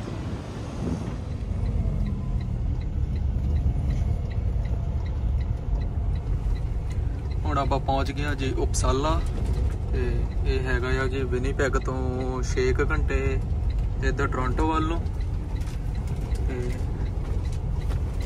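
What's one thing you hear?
A truck engine rumbles low and steady from inside the cab.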